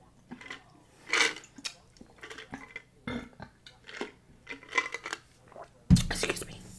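A woman gulps a drink loudly, close to a microphone.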